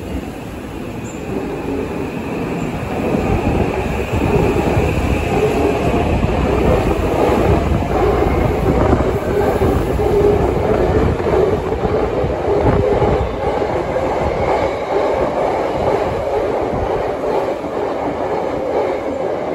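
A train's wheels rattle and squeal along the rails, echoing.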